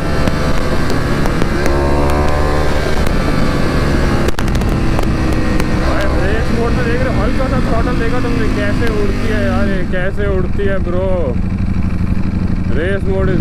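A motorcycle engine hums and revs as the bike rides along.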